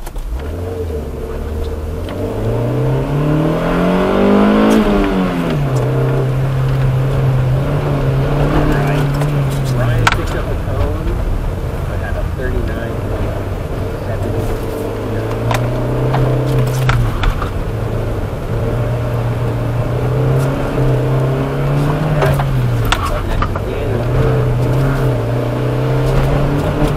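A car engine revs up and down, heard from inside.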